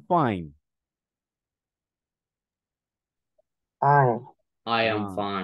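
A man speaks in short phrases over an online call.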